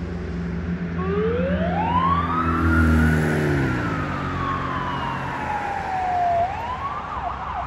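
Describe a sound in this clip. An ambulance siren wails, rising and falling as the vehicle drives away.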